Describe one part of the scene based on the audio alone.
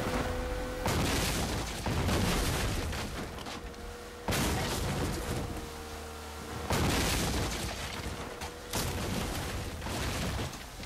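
Water splashes and rushes against the hull of a boat.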